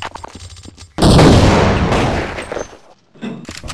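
A grenade explodes with a loud, echoing boom.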